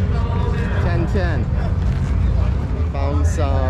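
Men and women chatter nearby in a crowd.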